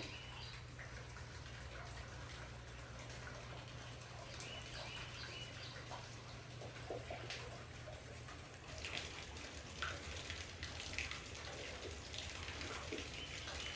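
Water splashes and trickles from a turning water wheel.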